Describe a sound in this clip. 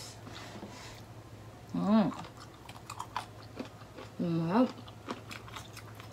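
A young woman chews food noisily.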